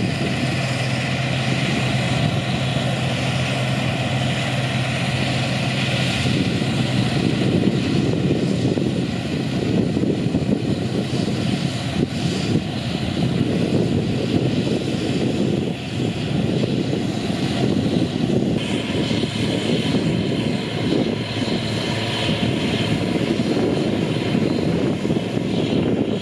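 A combine harvester's engine roars steadily nearby.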